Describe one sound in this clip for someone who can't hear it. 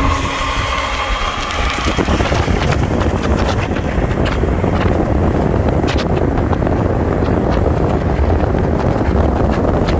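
Intermodal freight cars roll along the rails.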